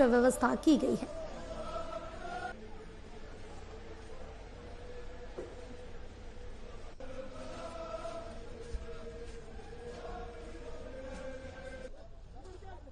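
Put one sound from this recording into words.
A crowd of men chants in unison outdoors, faint and distant.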